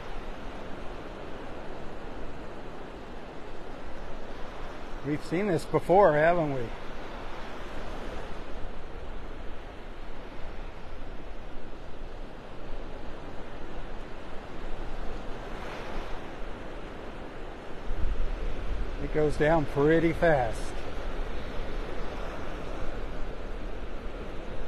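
Waves wash and roll steadily on the sea.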